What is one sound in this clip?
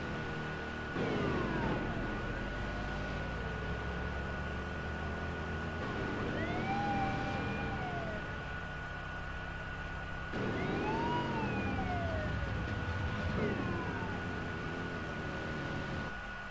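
A car engine roars at speed.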